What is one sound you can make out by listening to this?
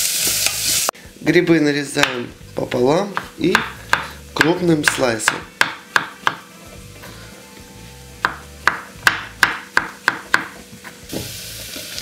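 A knife chops through mushrooms onto a wooden board.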